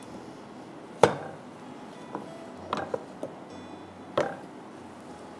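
A metal pot clanks against a stove.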